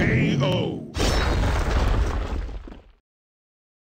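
An explosion bursts and rumbles, then fades away.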